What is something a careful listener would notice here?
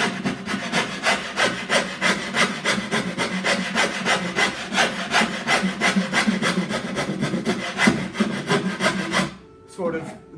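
A gouge scrapes wood in quick, steady strokes.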